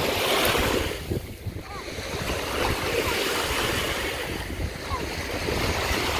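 A man wades quickly through shallow water, splashing.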